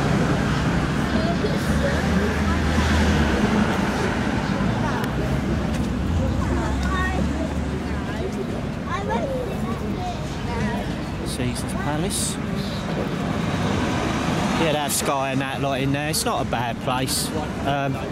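Traffic hums past on a nearby road.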